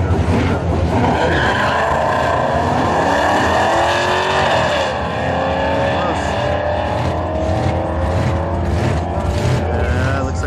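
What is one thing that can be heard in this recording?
Car engines roar, rising in pitch as they accelerate away.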